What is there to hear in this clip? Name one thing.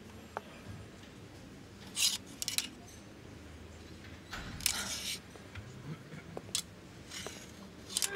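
Wooden hangers clack and scrape along a metal rail.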